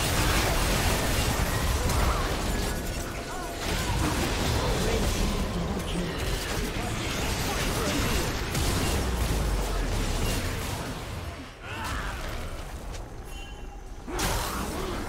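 Video game spells burst and crackle during a fight.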